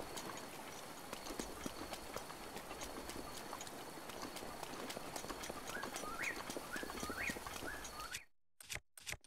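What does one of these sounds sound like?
Footsteps rustle quickly through grass.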